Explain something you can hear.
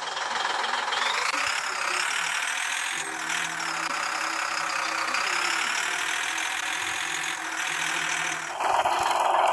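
A fire truck siren wails, rising and falling.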